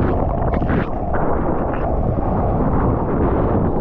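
A wave rushes and breaks nearby.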